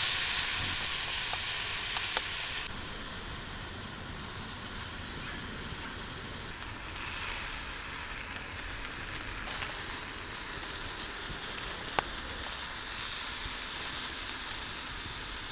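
Food sizzles gently in a pan.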